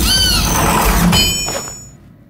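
A wooden door is knocked on.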